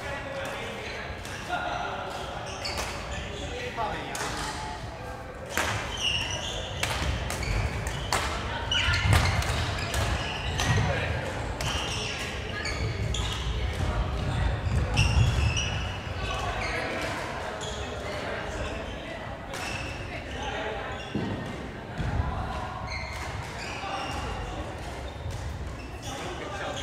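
Rackets smack shuttlecocks in sharp, quick hits in a large echoing hall.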